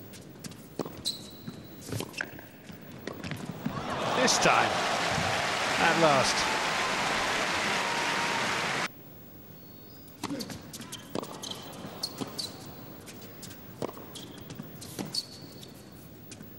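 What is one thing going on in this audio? Shoes squeak on a hard court.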